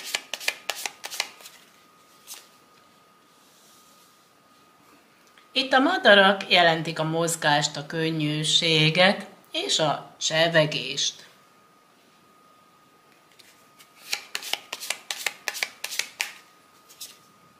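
Playing cards flick and patter as they are shuffled by hand.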